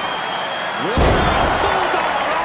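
A wrestler dives and crashes down onto the ring.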